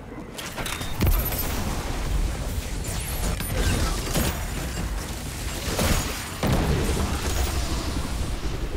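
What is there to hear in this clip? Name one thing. Rumbling explosions burst in the video game.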